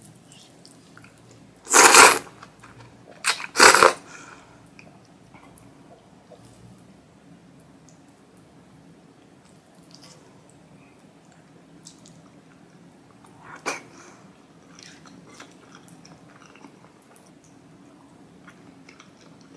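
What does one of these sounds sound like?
A young woman chews wet food with soft, close smacking sounds.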